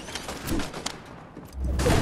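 Footsteps thump on wooden stairs.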